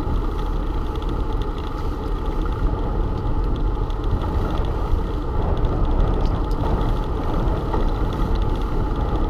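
Bicycle tyres roll and hum over pavement.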